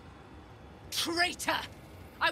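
A woman speaks firmly, close by.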